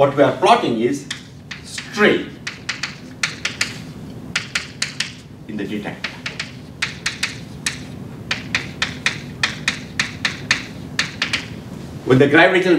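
Chalk taps and scrapes quickly on a blackboard.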